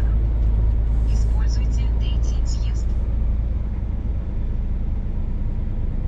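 A large diesel engine rumbles steadily.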